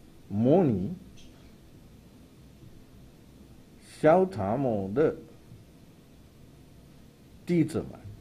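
A man speaks slowly and calmly into a microphone, with pauses between phrases.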